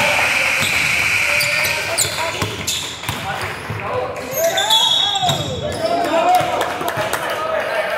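Young men call out to each other in a large echoing gym.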